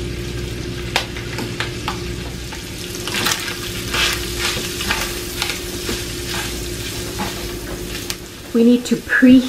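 Food sizzles in a hot frying pan.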